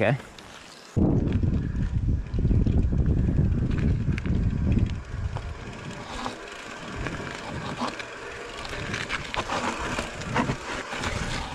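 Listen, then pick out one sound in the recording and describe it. A mountain bike rolls and rattles over rock and dirt up close.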